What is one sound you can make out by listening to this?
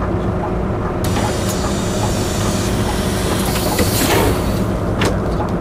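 A bus door closes with a hiss of air.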